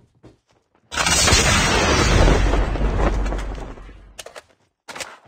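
A jetpack roars loudly, then fades away.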